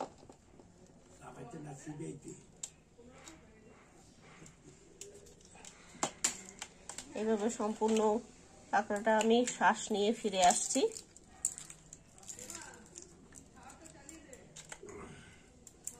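Crab shells crack and crunch as fingers pull them apart.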